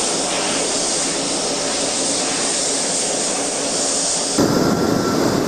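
A turboprop plane's engines roar loudly as it speeds along a runway.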